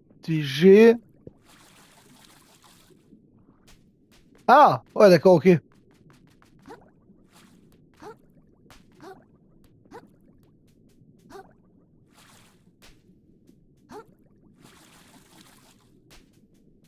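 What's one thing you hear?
Bubbles rise and pop softly underwater.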